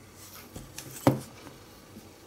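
A small plastic part taps down on a hard mat.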